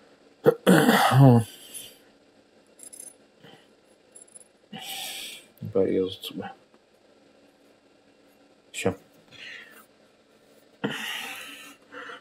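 A knife blade scrapes along metal.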